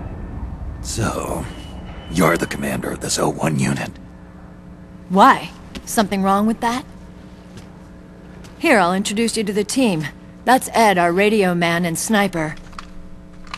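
A man speaks in a low, gravelly voice.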